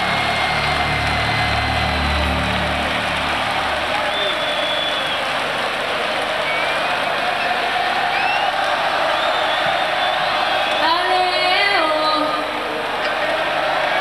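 A huge crowd cheers and roars in a large open arena.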